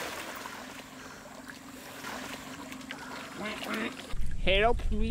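Water splashes and churns.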